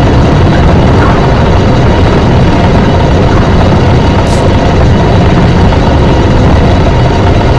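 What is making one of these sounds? A heavy stone block scrapes and grinds across a floor.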